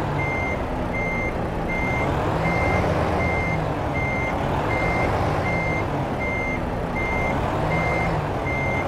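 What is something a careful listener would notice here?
A reversing alarm beeps at a steady, quick pace.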